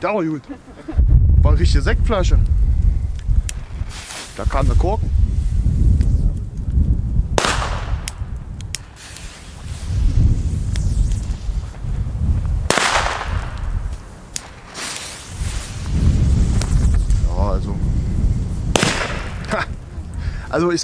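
Wind gusts roar outdoors in bursts.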